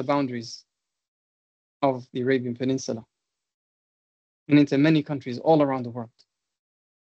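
A man speaks calmly in short phrases over an online call.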